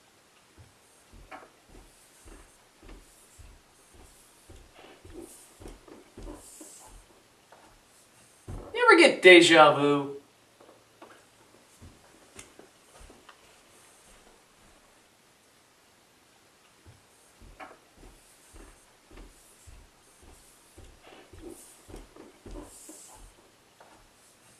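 Footsteps thump steadily up stairs.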